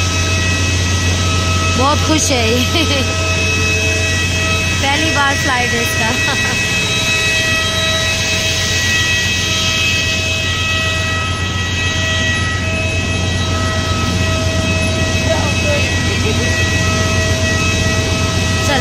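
Aircraft engines whine and hum steadily nearby.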